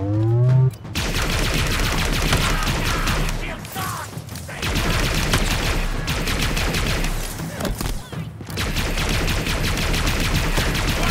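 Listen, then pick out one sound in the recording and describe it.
A plasma gun fires in rapid bursts of crackling shots.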